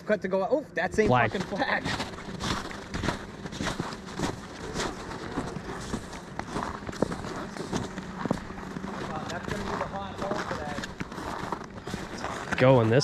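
Boots crunch on snow and ice.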